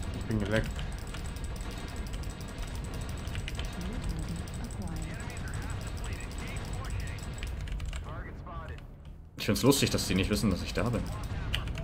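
Weapons fire in rapid bursts.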